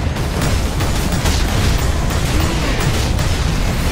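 Energy bolts zap and crackle.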